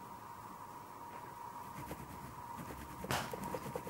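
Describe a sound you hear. Fingers rub and smudge chalky pastel on paper.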